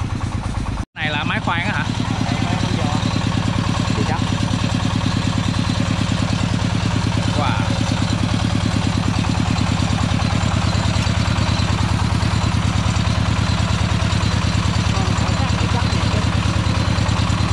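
A drilling machine engine runs with a steady, rapid throb.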